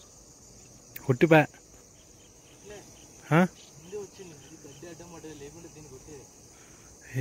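A man talks nearby in short bursts.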